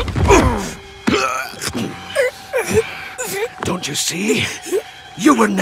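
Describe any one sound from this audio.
A deep-voiced man snarls angrily.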